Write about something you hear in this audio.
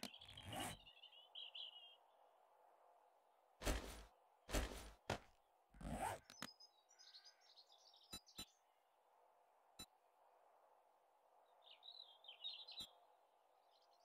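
Short clicks sound as items are picked in a game menu.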